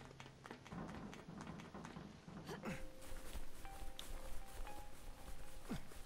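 Footsteps run over a wooden roof and then along the ground.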